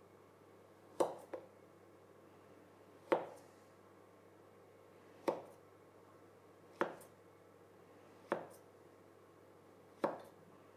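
A knife chops through dough against a wooden board with sharp knocks.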